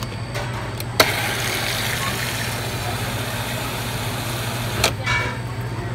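A soda fountain pours a fizzy drink into a cup.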